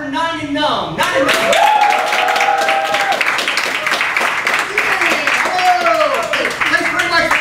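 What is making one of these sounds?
An audience claps and applauds loudly in an echoing room.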